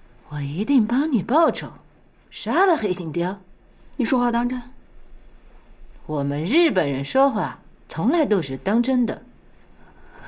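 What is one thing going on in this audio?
A woman speaks firmly and close by.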